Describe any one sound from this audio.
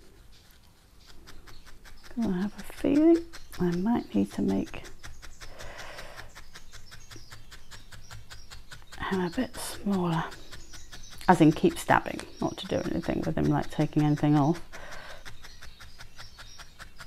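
A felting needle pokes rapidly and softly into wool.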